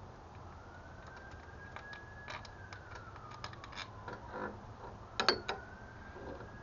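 Plastic parts click and knock as hands pull at an engine connector.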